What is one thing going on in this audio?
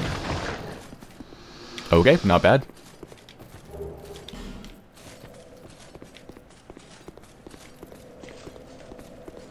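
Armoured footsteps crunch over dry leaves and stone.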